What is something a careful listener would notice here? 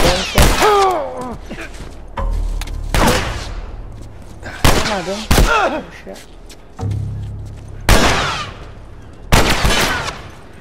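Gunshots crack loudly and echo between buildings.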